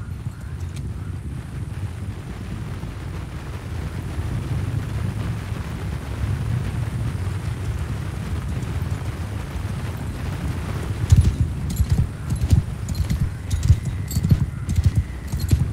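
A horse's hooves thud steadily on grass.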